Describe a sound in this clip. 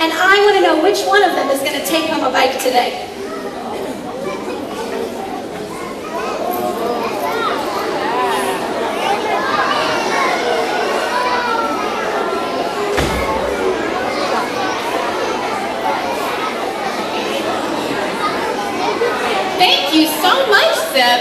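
A young woman speaks with animation on a stage, heard through a microphone in an echoing hall.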